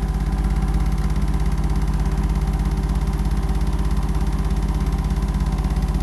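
A washing machine hums with a steady, rapid low rattle.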